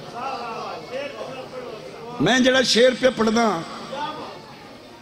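A man speaks forcefully into a microphone over a loudspeaker, his voice rising to a loud chant.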